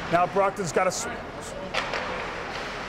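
A hockey stick clacks against the puck.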